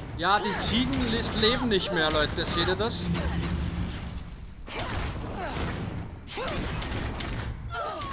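Magic spell blasts crackle and boom in quick succession.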